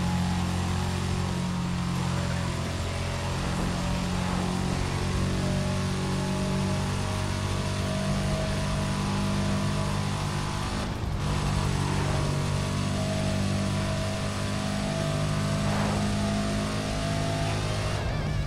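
A racing car engine roars at high revs, steady and loud.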